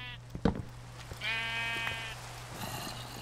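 A sheep bleats nearby.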